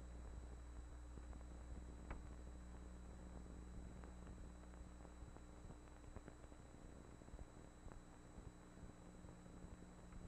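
Small objects knock and clink on a desk.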